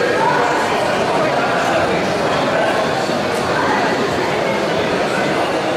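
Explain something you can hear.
A crowd of people chatters all around in a large echoing hall.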